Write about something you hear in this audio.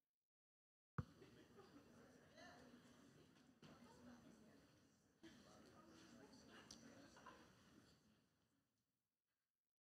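A crowd murmurs quietly in a room.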